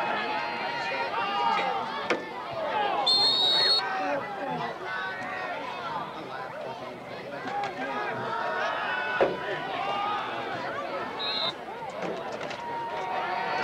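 A crowd of young men on a sideline shouts and cheers outdoors.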